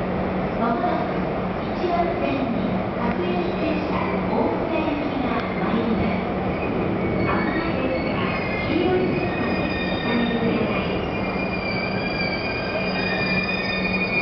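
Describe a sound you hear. An electric train rumbles closer.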